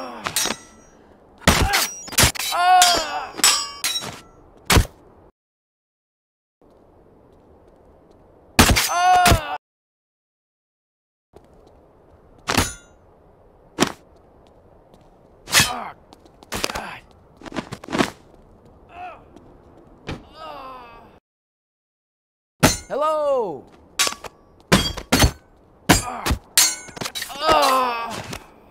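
Sharp blows land with heavy thuds.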